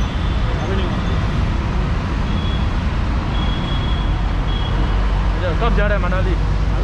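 A young man answers in a quiet voice, close by.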